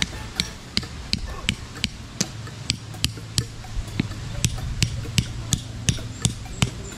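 A man scrapes and digs at dry soil by hand.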